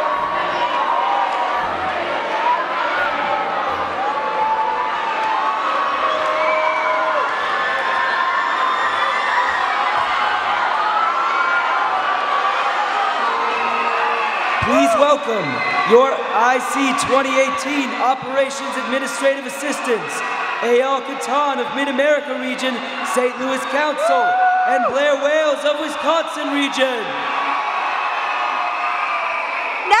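A large crowd cheers and sings along in a big echoing hall.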